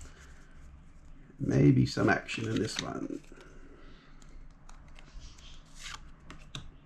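Playing cards rustle and flick as they are shuffled.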